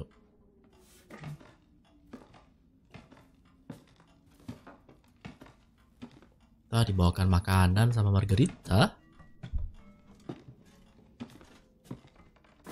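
Slow footsteps thud on a wooden floor, coming closer.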